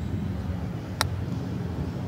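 A golf club strikes a ball with a crisp click.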